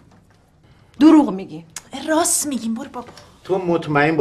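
An elderly woman speaks nearby.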